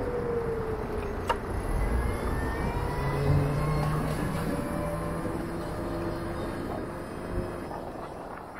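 A motorcycle engine hums and changes pitch as the bike rides along.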